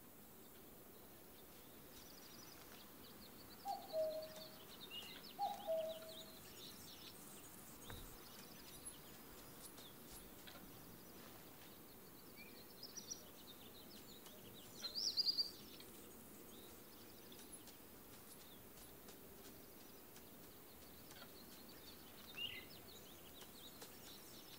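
Footsteps rustle softly through dry grass and brush.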